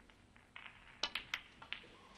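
A cue strikes a snooker cue ball.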